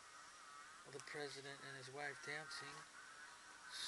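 Magazine pages rustle as they turn.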